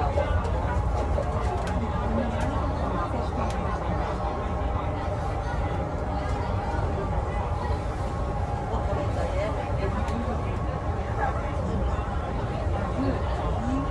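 A bus engine hums and rumbles steadily.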